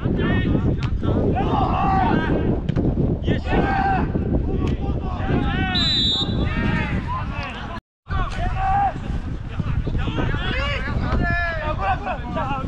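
Male players shout and call out across an open field.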